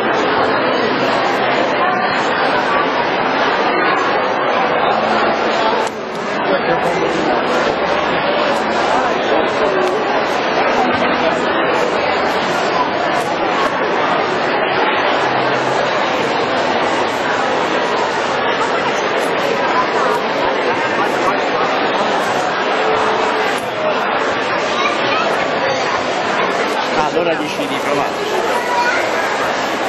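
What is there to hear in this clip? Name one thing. A crowd of people chatters all around.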